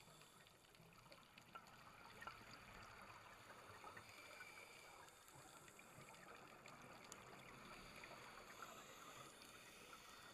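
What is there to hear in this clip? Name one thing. Underwater, scuba bubbles gurgle and crackle steadily around a diver.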